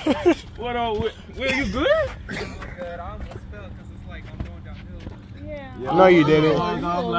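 Young men shout and talk excitedly close by, outdoors.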